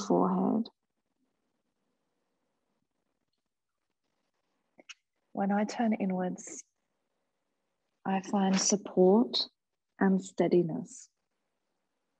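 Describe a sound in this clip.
A woman speaks calmly and softly, close by, in short phrases with long pauses.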